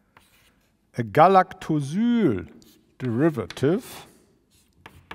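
A man speaks.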